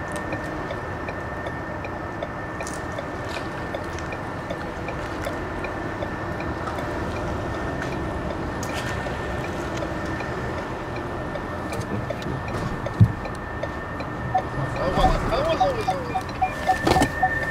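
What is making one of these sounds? A car's road noise rumbles, heard from inside.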